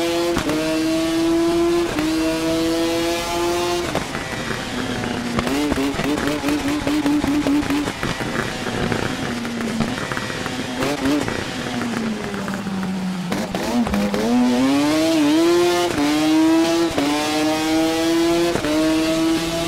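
A motorcycle engine screams at high revs, shifting gears up and down.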